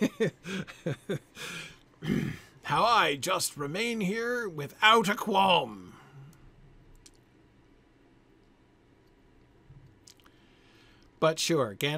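An older man speaks with animation, close to a microphone.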